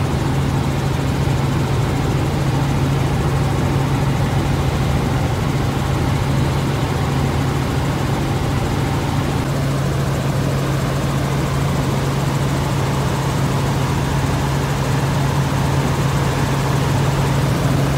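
A helicopter's engine and rotor blades drone loudly and steadily from close by.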